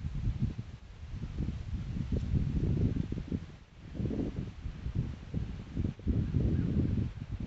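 Wind blows in strong, uneven gusts outdoors.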